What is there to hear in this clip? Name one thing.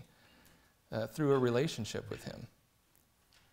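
A man speaks calmly into a nearby microphone.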